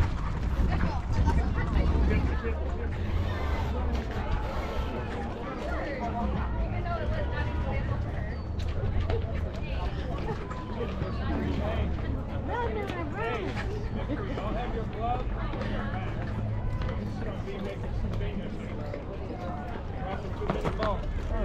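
Young women call out and chatter across an open field.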